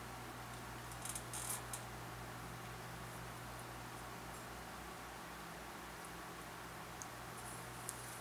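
A leather pad rustles softly as it is handled.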